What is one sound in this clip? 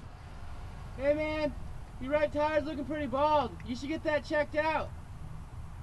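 A young man speaks cheerfully close by.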